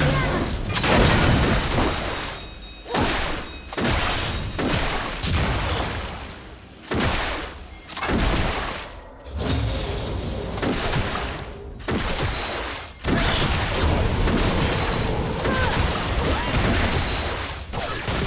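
Spell effects whoosh and clash in a video game battle.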